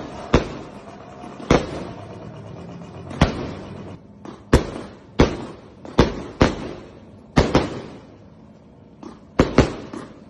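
Fireworks bang and crackle outdoors.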